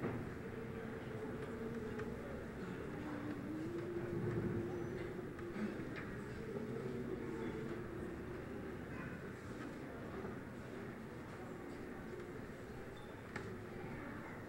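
A children's choir sings softly together in a large hall.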